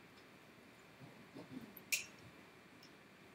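A woman speaks briefly at a distance in a large room.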